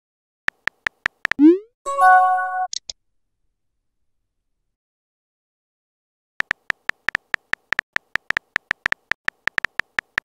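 Keyboard taps click quickly in a steady run.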